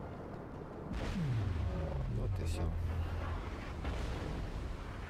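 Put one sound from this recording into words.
A huge explosion booms and rumbles, then fades.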